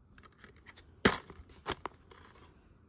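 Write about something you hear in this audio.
A plastic case snaps open.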